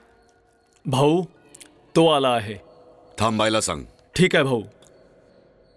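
A man speaks loudly and with emotion, close by.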